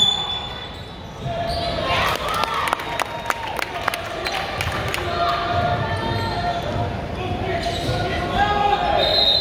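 A crowd of spectators chatters and calls out.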